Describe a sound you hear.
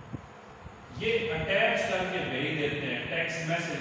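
A young man speaks calmly, as if teaching.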